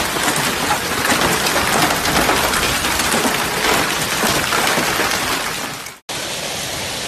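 Hailstones clatter on a car's metal body.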